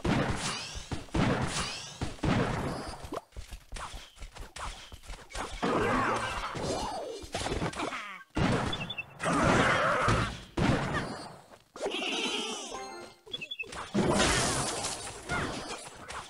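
Game sound effects clash, zap and chime in quick bursts.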